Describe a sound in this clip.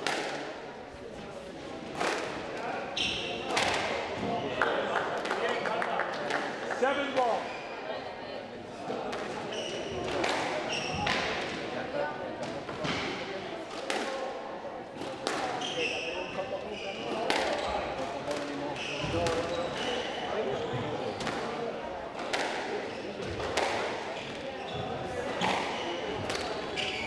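A squash ball smacks sharply off rackets and walls in a rally.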